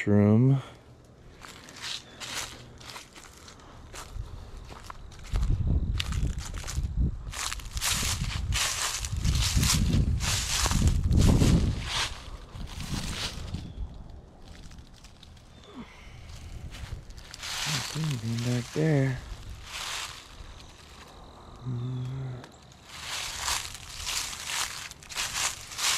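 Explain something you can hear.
Dry leaves crunch and rustle underfoot as someone walks slowly outdoors.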